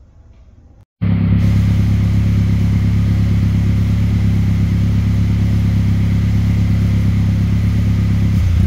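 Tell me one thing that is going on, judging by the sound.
A car engine idles loudly with a deep, steady rumble through its exhaust.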